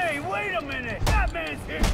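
A heavy punch thuds.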